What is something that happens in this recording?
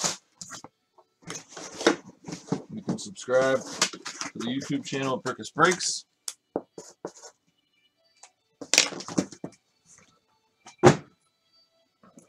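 A cardboard box rustles and thumps as it is handled.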